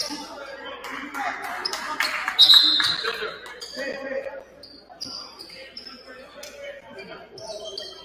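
Spectators murmur and call out in a large echoing gym.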